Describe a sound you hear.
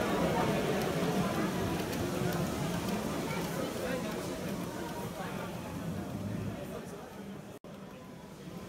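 A model freight train rolls along its track.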